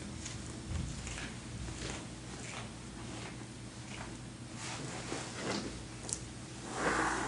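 A marker squeaks and scratches across paper in short strokes.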